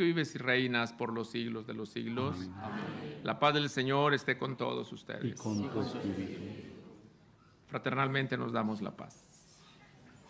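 A man chants a prayer through a microphone in a large echoing hall.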